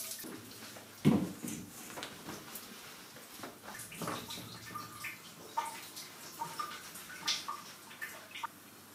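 A towel rubs against skin.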